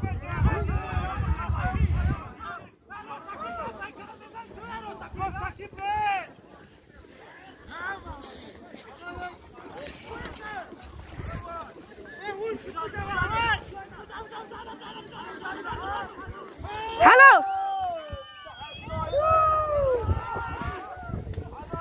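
A crowd of men shout and call out across an open field.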